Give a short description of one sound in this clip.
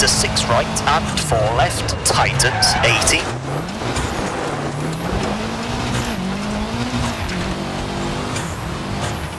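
A rally car engine roars, its pitch rising and falling as it shifts gears.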